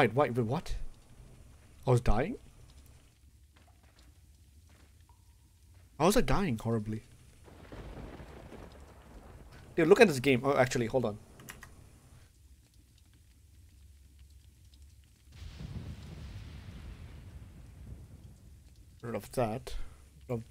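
A man talks with animation into a close microphone, in short bursts.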